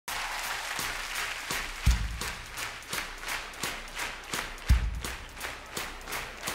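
An audience claps along in a steady rhythm.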